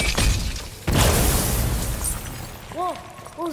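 A loud burst crackles and roars.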